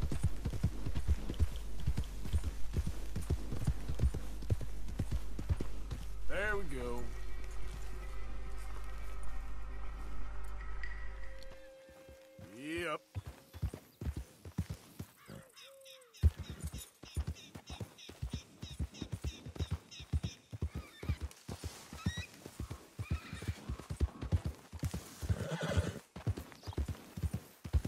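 Horse hooves thud rhythmically on grass at a steady gait.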